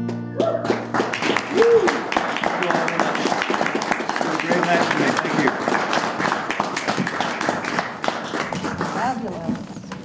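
A man strums an acoustic guitar.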